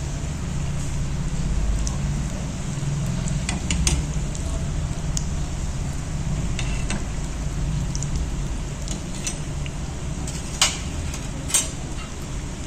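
Hot oil sizzles and crackles steadily as food fries.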